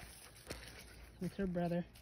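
A young dog pants.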